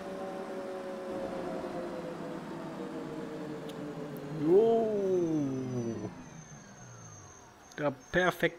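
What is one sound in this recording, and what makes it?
A bus engine hums and winds down as the bus slows.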